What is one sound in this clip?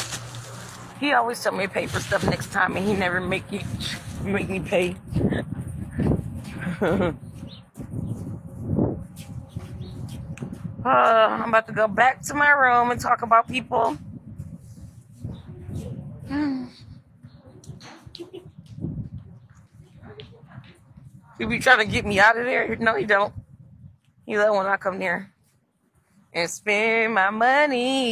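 A young woman talks casually and close to a phone microphone.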